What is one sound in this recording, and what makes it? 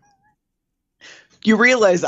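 Another man speaks animatedly over an online call.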